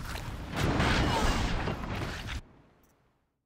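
A large mechanical creature roars and crashes loudly nearby.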